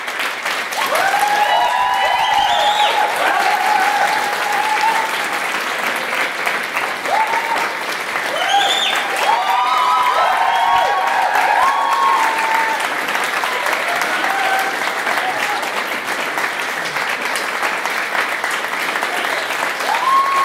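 Young men and women cheer and whoop loudly.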